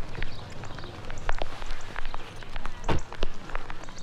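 A car door thumps shut.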